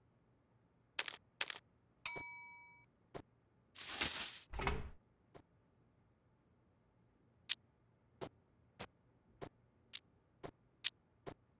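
Short game sound effects click as food is placed.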